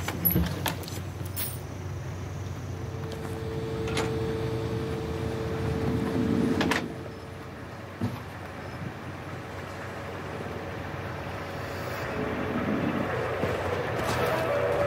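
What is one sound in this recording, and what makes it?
Electrical equipment hums steadily.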